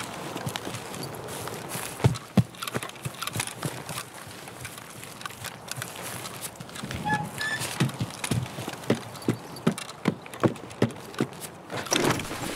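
Footsteps thud steadily on grass and wooden floors.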